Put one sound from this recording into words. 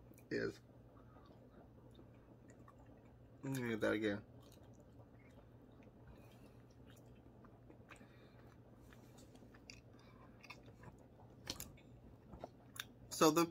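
A man chews and crunches food.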